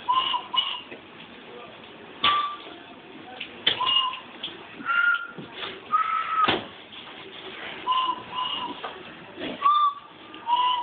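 A man blows short whistle notes at different pitches.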